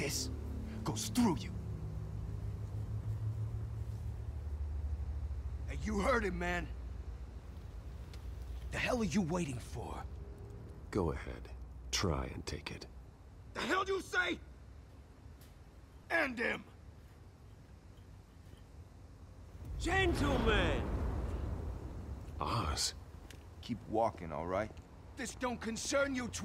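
A man speaks in a low, threatening voice.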